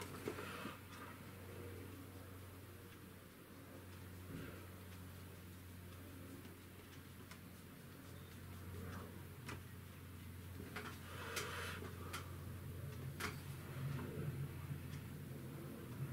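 A paintbrush brushes and scrapes softly across a canvas.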